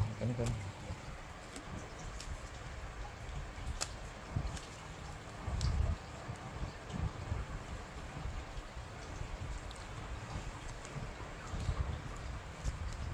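Plastic tubing rustles and taps against wood.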